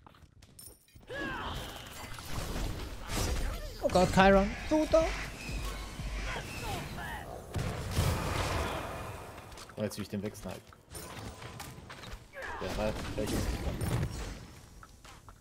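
Game spells blast and crackle in bursts.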